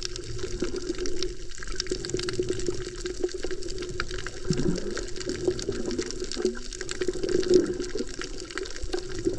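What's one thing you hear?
A muffled underwater rumble with faint crackling clicks fills the water.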